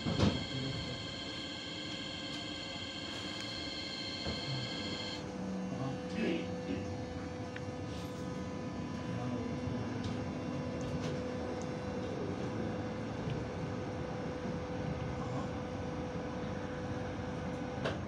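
A tram rumbles and hums steadily along its rails.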